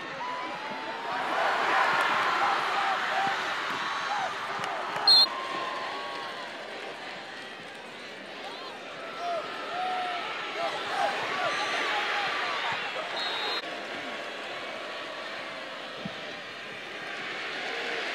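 A large crowd cheers and shouts in a stadium.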